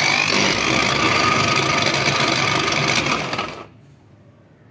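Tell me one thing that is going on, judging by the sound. A food chopper whirs loudly, then stops.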